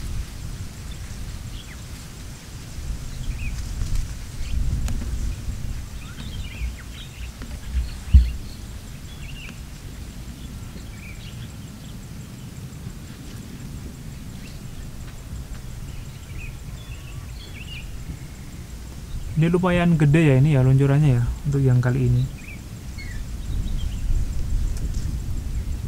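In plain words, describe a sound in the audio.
Birds chirp faintly in the distance.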